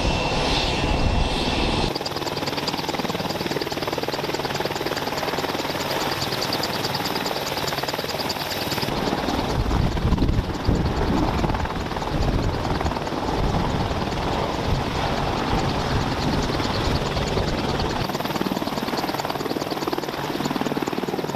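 A helicopter's turbine engine whines loudly.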